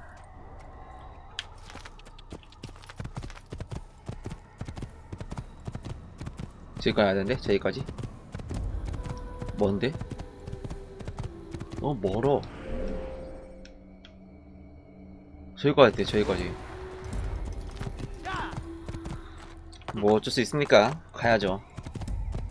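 Horse hooves clop quickly on a dirt path.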